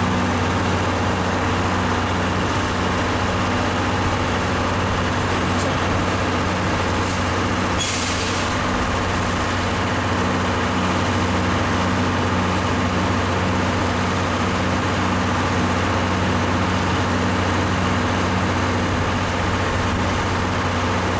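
A tractor engine idles steadily nearby.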